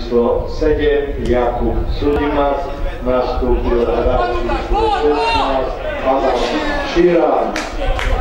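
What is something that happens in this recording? A football is kicked hard on a grass field outdoors.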